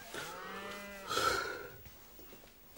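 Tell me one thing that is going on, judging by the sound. A man yawns loudly with a groan.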